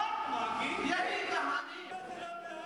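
Several men chant loudly together through microphones.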